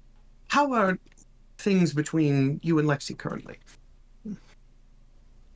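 A man speaks with animation over a headset microphone.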